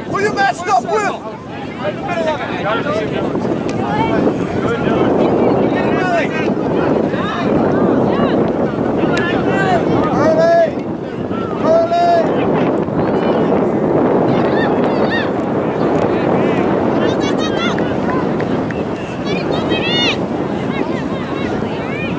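Young men and boys shout to one another across an open field.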